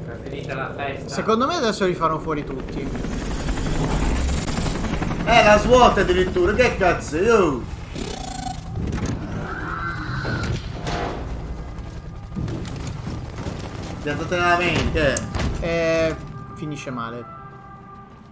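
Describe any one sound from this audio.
Young men talk with animation close to a microphone.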